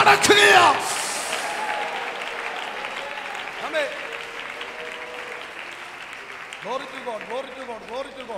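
A man speaks with animation into a microphone, heard through loudspeakers in an echoing hall.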